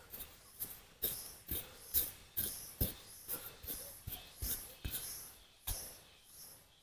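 A small blade stabs and scrapes into dry, sandy soil in quick, repeated strokes.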